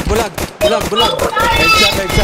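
Rapid gunshots ring out close by.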